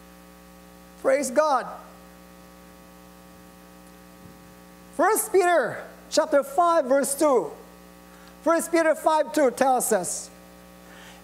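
A middle-aged man speaks into a microphone in bursts, with pauses between phrases.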